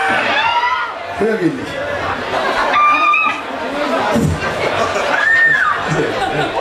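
A man shouts into a microphone through loud speakers.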